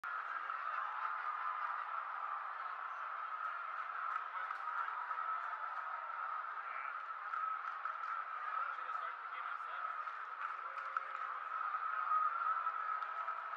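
A large stadium crowd murmurs and chatters steadily all around.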